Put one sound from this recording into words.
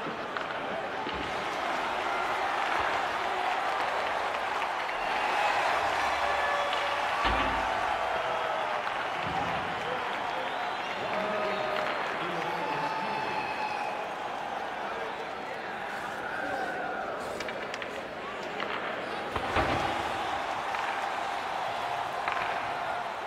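A large crowd roars and murmurs steadily in an echoing arena.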